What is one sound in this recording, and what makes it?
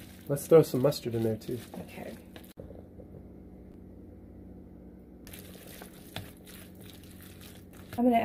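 A spoon stirs and scrapes through a thick, wet mixture in a bowl.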